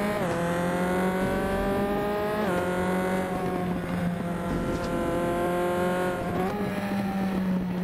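A racing car engine whines loudly up close, rising in pitch and dropping sharply with each gear change.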